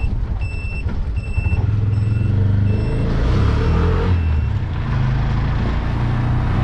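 Wind rushes past an open-sided vehicle.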